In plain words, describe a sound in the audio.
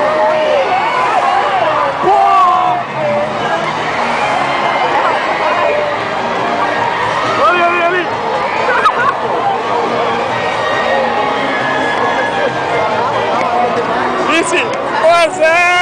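A large crowd chatters and cheers in a big open stadium.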